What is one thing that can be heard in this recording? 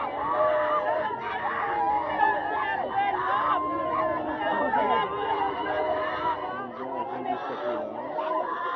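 A crowd of people chatters and calls out nearby.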